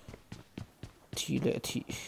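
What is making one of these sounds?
Footsteps tread on hard stairs.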